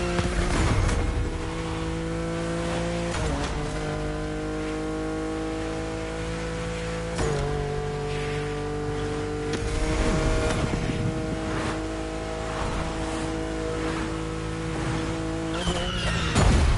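A car engine roars at high revs, shifting up through the gears.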